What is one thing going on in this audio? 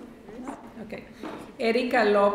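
A woman speaks calmly into a microphone over loudspeakers in a large hall.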